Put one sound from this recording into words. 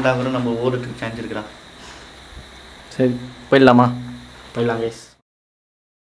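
A young man speaks close by.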